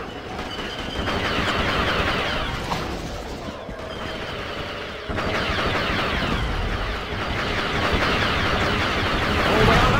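Laser rifles fire in rapid bursts nearby.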